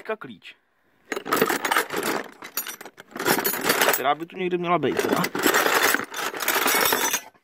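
Metal wrenches clink and rattle in a plastic box.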